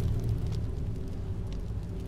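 A campfire crackles and hisses.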